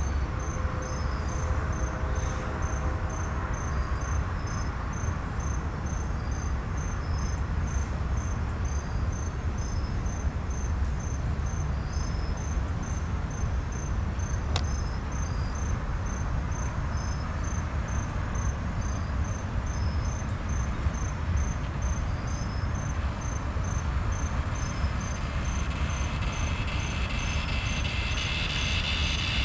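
A railway crossing bell dings over and over at an even pace.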